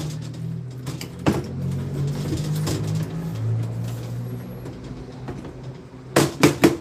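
Copper tubing clinks and rattles as a man handles it.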